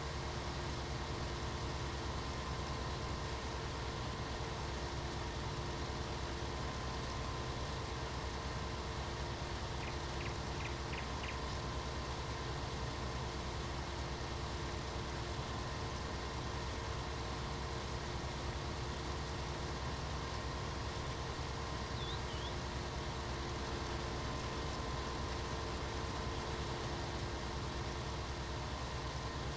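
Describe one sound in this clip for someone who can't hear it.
A diesel combine harvester drones as it harvests grain.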